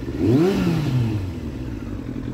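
A motorcycle engine revs up briefly and drops back.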